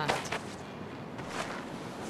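A young woman speaks with urgency.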